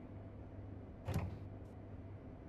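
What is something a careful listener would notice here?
An oven door opens with a clunk.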